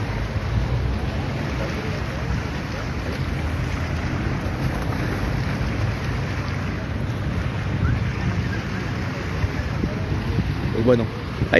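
Waves lap against a sea wall.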